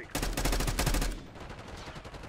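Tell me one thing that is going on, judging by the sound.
Rapid gunfire rattles in a short burst.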